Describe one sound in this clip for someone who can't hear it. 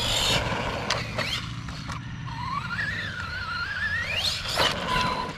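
A small electric motor whines, rising and falling in pitch as a toy car speeds over the dirt.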